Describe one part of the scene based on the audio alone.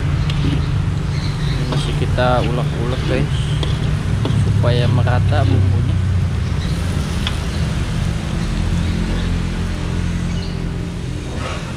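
A metal spatula scrapes and stirs food in a metal wok.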